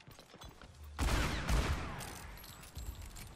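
A revolver is reloaded with metallic clicks and spent shells clattering.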